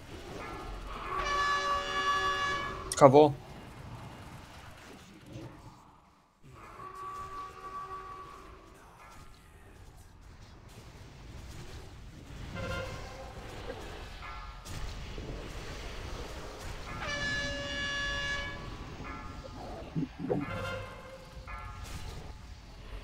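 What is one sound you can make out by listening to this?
Magic spells chime and ring out in short bursts.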